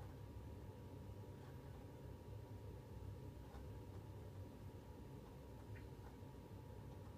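Low, droning menu music plays softly from a television.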